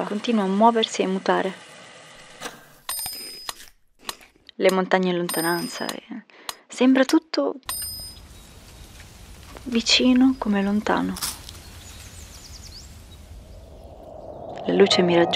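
A young woman speaks softly and calmly, close to a microphone.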